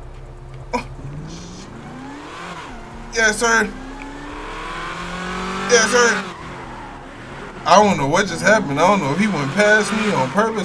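A car engine revs and rises in pitch as the car speeds up.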